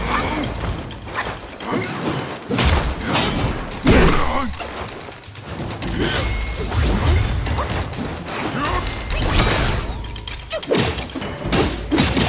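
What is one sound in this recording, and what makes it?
Fire crackles and whooshes from a flaming weapon.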